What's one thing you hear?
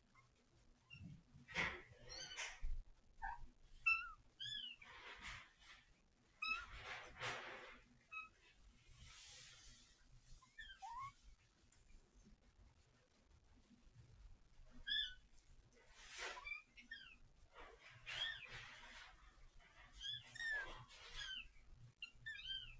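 Kittens scuffle and pounce on a floor close by.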